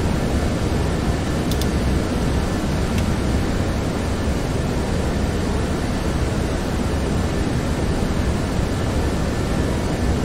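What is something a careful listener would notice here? A steady low engine roar fills the cockpit.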